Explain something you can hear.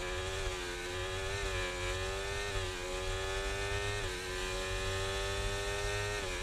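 A racing car engine whines at high revs, dropping briefly in pitch at each gear change.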